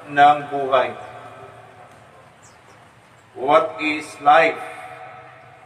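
A man speaks slowly, with feeling, in short phrases.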